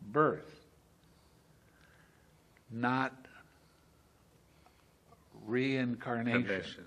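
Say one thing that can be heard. An elderly man speaks slowly and expressively, close to a microphone, with long pauses.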